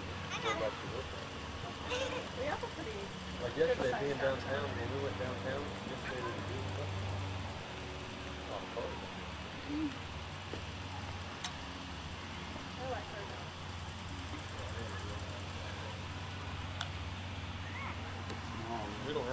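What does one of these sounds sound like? Young children chatter and squeal outdoors.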